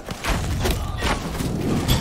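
A gun fires a shot.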